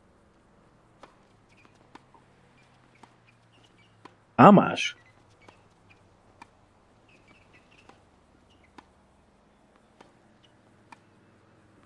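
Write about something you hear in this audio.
A tennis ball is struck back and forth with sharp pops of a racket.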